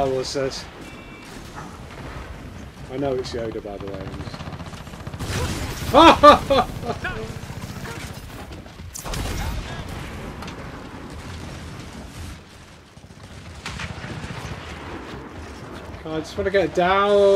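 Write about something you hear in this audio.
Gunfire cracks in short bursts.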